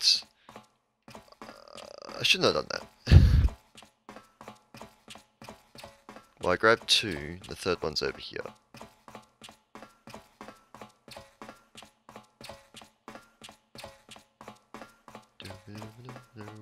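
Quick footsteps tap on a hard metal floor.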